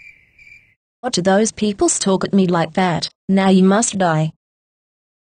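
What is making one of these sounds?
A young girl speaks with animation in a high cartoonish voice.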